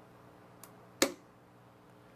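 A button clicks once.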